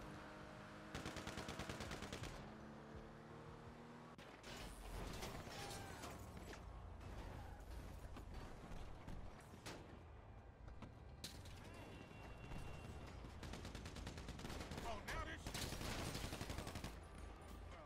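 Rapid gunshots crack in bursts.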